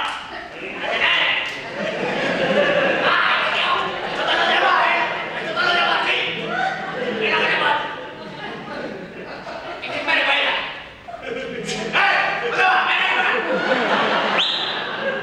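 A group of men sing together in a large hall.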